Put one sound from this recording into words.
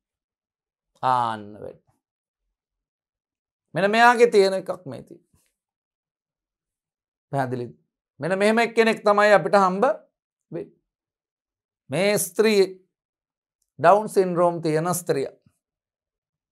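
A man lectures calmly through a microphone, in short phrases with pauses.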